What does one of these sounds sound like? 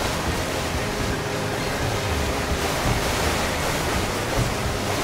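Water sprays and splashes against a jet ski.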